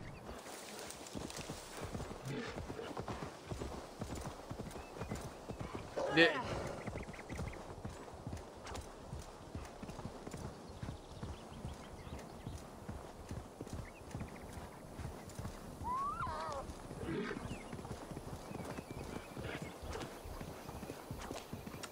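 A young man speaks briefly through a headset microphone.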